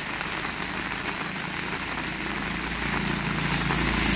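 A vehicle approaches slowly with a low engine hum.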